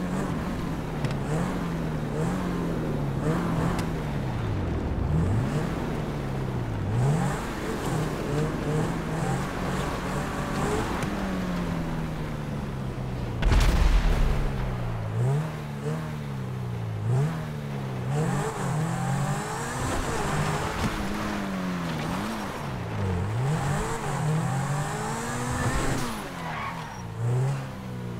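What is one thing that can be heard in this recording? A car engine revs up and down repeatedly, shifting gears.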